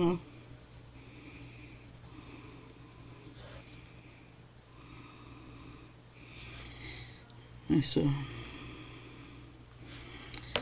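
A colored pencil scratches softly across paper.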